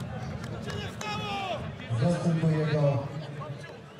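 Two players slap hands in a high five.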